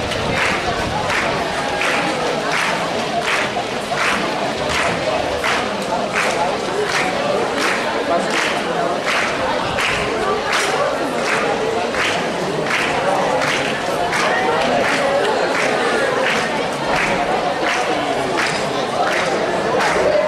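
A large crowd of children chatters outdoors.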